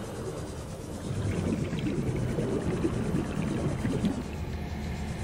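Water rumbles and swirls around a moving submarine.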